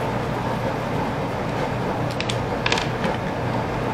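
A screwdriver scrapes as it turns a small screw.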